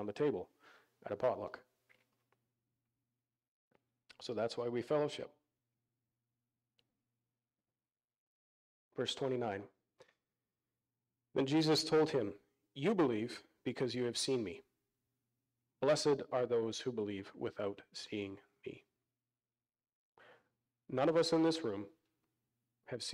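A man speaks calmly into a microphone, heard through a loudspeaker in a large room, with pauses.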